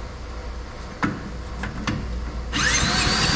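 A starter cord is yanked on a small engine.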